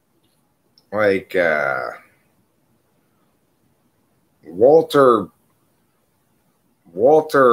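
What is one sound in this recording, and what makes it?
A middle-aged man speaks in short, calm bursts close to a microphone.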